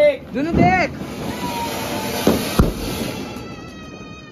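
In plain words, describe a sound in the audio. A firework fountain hisses loudly.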